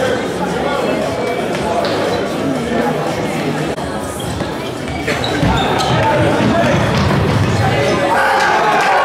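Players call out to each other in a large echoing hall.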